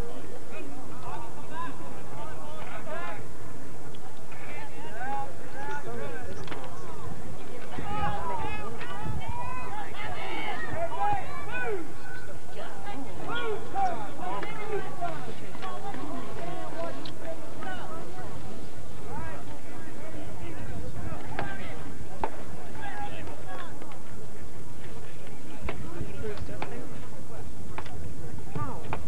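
A crowd of spectators chatter and cheer outdoors.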